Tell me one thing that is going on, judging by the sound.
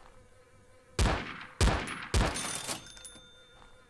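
A pistol fires three loud shots that echo.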